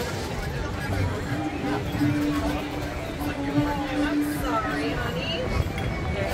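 Men and women chat at nearby tables.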